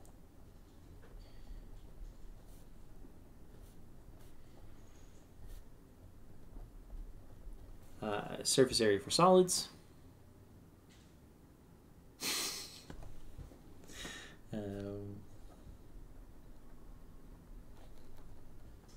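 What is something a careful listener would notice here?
A pen writes on paper.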